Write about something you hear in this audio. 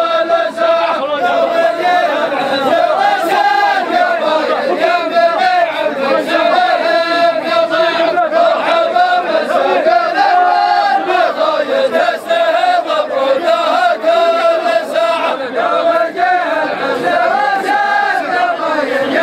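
A large group of men chants together loudly in unison, in a large echoing hall.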